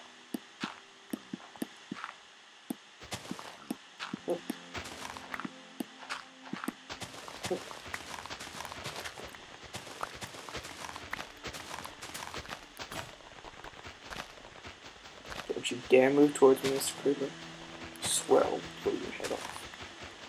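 Blocks of earth crumble and break with quick, repeated crunching knocks.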